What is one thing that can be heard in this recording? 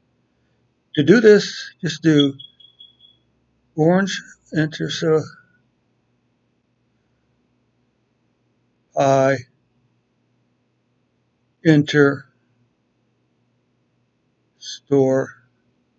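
An elderly man speaks calmly through a microphone, explaining in short phrases.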